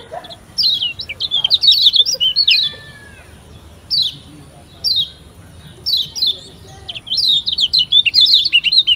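A small bird chirps in quick, high bursts.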